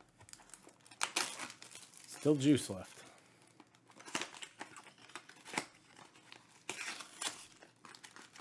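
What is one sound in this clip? Plastic wrapping crinkles and rustles as hands tear it off a box.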